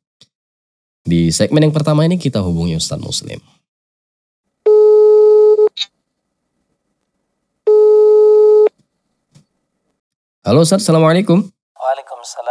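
A young man speaks calmly and clearly into a close microphone, pausing between phrases.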